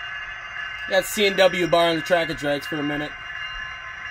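A model locomotive's horn blasts several times.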